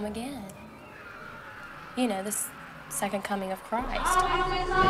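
A young woman speaks quietly and earnestly, close by.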